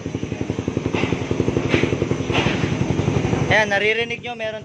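A motorcycle engine revs up, then drops back to idle.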